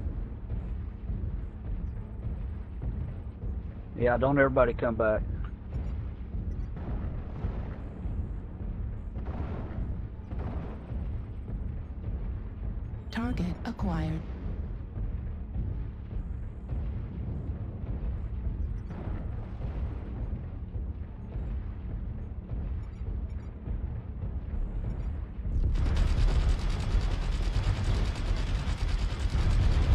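Heavy machine footsteps thud and rumble steadily.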